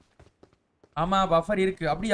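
A young man speaks with animation, close into a headset microphone.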